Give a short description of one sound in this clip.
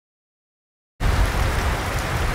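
Rain falls steadily on a street.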